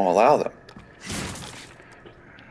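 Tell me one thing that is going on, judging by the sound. A wooden crate splinters under a sharp blow.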